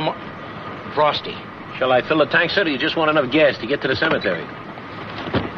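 A second man answers sharply.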